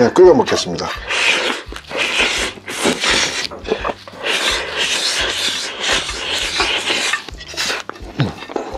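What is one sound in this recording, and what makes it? A man slurps noodles loudly from a bowl.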